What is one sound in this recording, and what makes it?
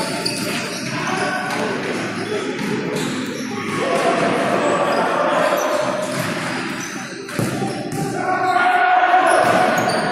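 Men shout and call out across an echoing hall.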